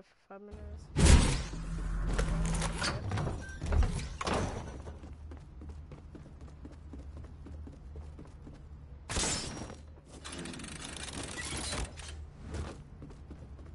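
Wooden panels clatter and snap into place in quick bursts.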